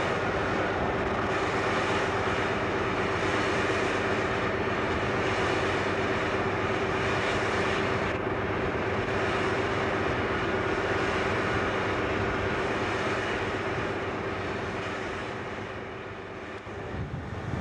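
A train rumbles along the tracks, pulling away.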